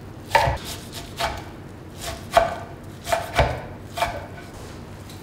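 A knife chops on a wooden board.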